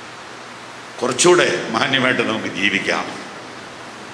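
A middle-aged man speaks solemnly into a microphone through a loudspeaker.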